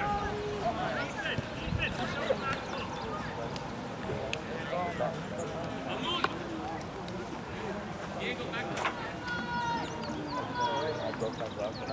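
Young men shout and call to each other across an open field.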